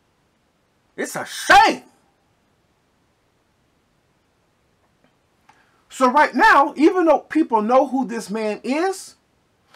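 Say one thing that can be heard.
A man speaks close to a microphone with animation, in short bursts broken by silence.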